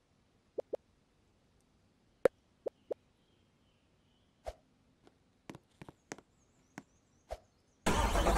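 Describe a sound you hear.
Game menu buttons click a few times.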